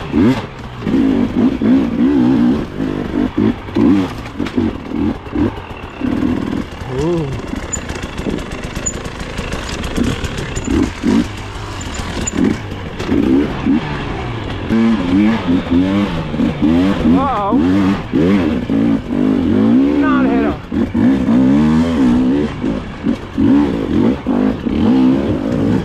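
Tyres crunch and scrabble over dirt and twigs.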